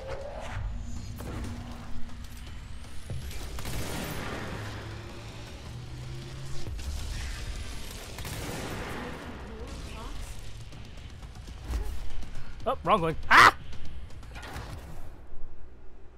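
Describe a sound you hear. Debris crashes and rumbles loudly.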